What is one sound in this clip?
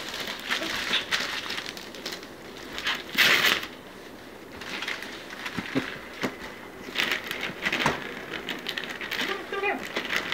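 Wrapping paper rustles and crinkles.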